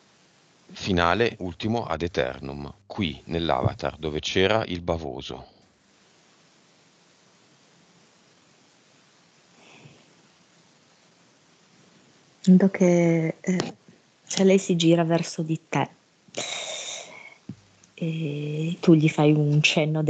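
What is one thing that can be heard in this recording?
A man speaks calmly into a headset microphone, heard through an online call.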